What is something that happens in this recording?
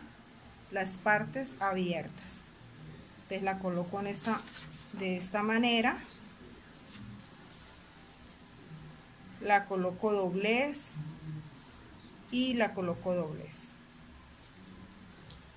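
Paper rustles and crinkles as it is folded and smoothed.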